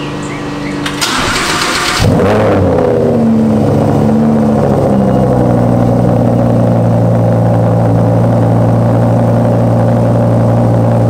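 A sports car engine cranks and roars to life, then idles with a deep rumble in an echoing garage.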